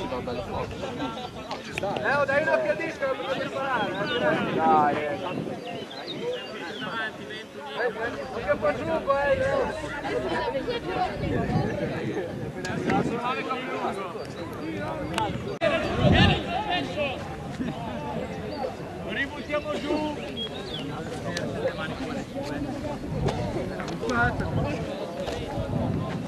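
Young men call out to each other across an open field outdoors.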